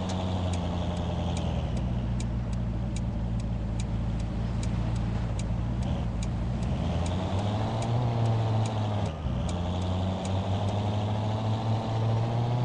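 A car engine hums steadily and rises and falls in pitch as it speeds up and shifts gear.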